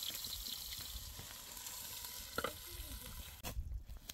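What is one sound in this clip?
A metal lid clinks against a cooking pot.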